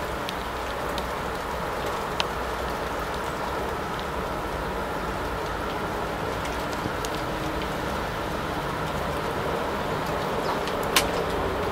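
A small bird pecks at seeds with faint taps.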